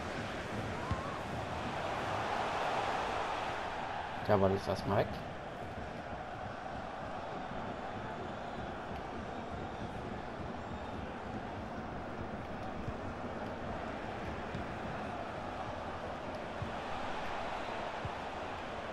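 A stadium crowd murmurs and roars steadily throughout.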